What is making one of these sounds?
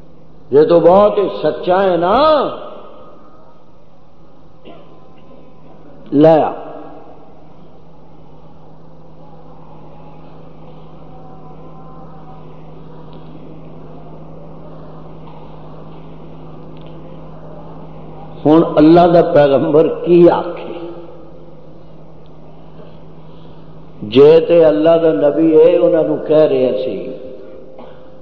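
An elderly man chants loudly through a microphone in long drawn-out phrases, with pauses between them.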